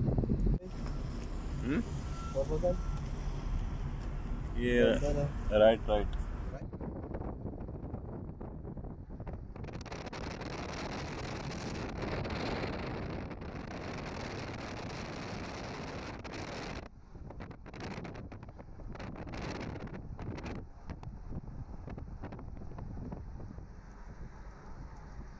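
Road noise hums inside a moving car.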